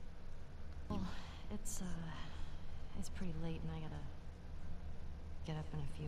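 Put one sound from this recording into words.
A young woman speaks hesitantly.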